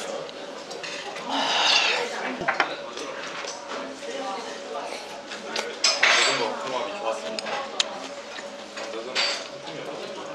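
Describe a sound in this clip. A fork clinks against a bowl.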